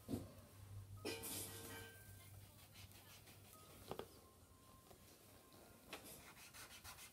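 Pencils scratch softly on paper.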